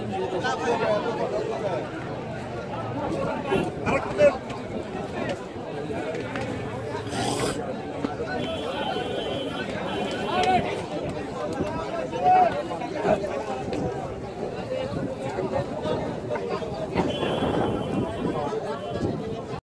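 A crowd of men chatters all around outdoors.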